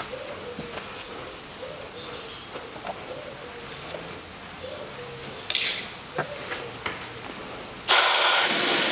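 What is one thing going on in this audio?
A plastic cover rattles and clicks as it is lifted and handled.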